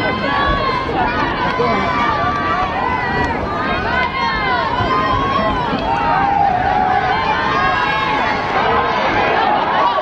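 A crowd of spectators cheers and chatters outdoors.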